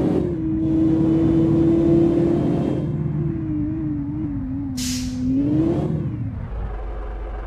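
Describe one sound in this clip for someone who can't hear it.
A car engine roars at speed, then drops in pitch as the car slows.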